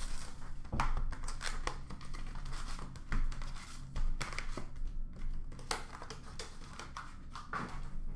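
Plastic-wrapped packs rustle and tap as they are handled close by.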